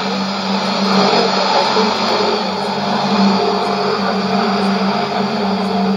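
A shortwave radio gives off a steady low hum.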